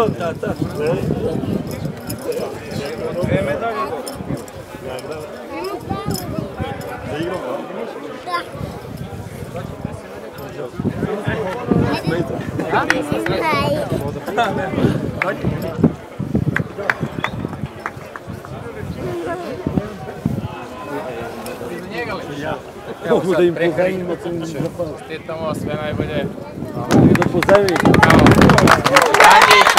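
Several men talk and chat close by, outdoors.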